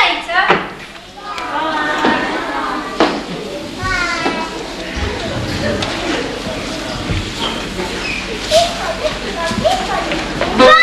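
A child speaks loudly from a distance in an echoing hall.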